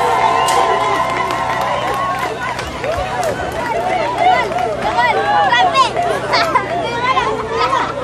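A crowd cheers and ululates outdoors.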